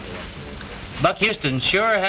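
A young woman speaks with urgency nearby.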